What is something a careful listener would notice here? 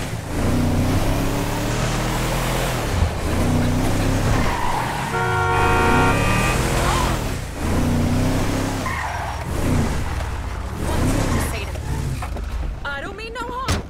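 A pickup truck's engine rumbles and revs up and down as it drives.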